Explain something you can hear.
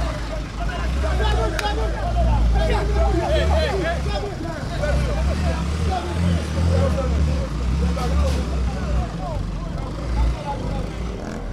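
Men shout and talk excitedly nearby outdoors.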